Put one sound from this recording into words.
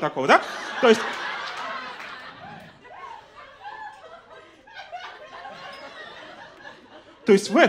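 An audience laughs.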